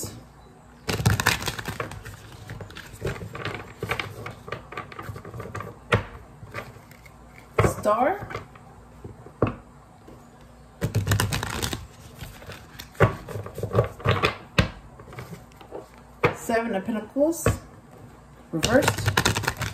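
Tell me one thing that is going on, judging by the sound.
A deck of playing cards flutters and riffles as it is shuffled by hand.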